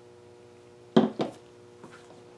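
A canvas knocks twice against a table.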